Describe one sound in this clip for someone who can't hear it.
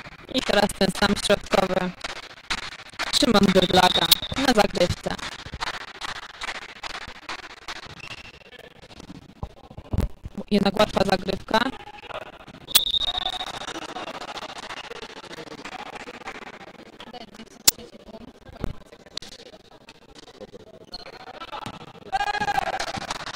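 Volleyball players shout and call out to each other in a large echoing gym.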